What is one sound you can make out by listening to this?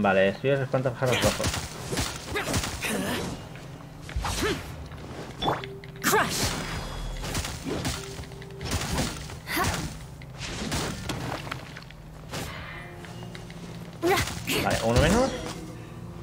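A spear swishes and strikes with crackling magic bursts.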